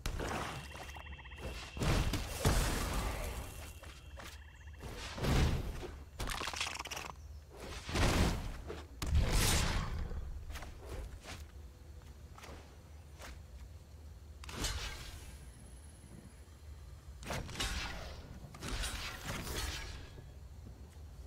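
Magical whooshing sound effects burst and fade, again and again.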